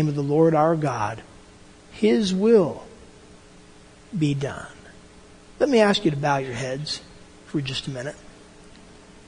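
An elderly man speaks calmly, close by, in short phrases.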